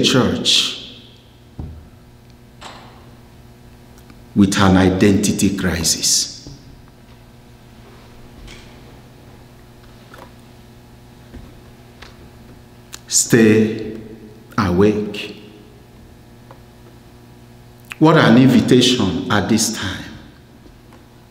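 A man speaks calmly into a microphone, in bursts with long pauses, in a room with some echo.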